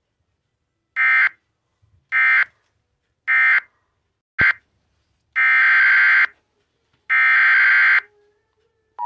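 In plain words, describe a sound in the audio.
Loud electronic beeps sound in short bursts.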